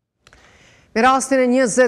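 A woman speaks calmly and clearly into a microphone.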